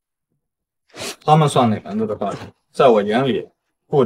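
A young man speaks scornfully.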